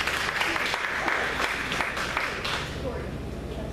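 An audience claps in a large room.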